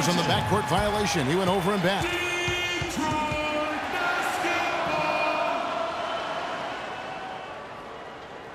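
A crowd cheers and murmurs in a large echoing arena.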